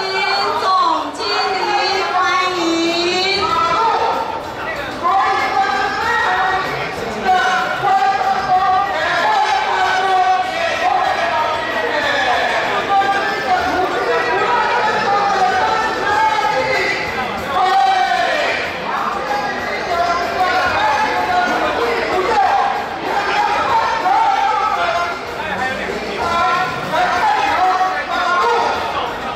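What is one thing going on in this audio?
A crowd of people chatters and murmurs outdoors.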